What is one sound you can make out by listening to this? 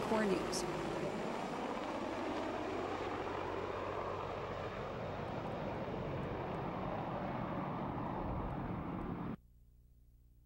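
A helicopter's rotor thumps loudly overhead as the helicopter flies away.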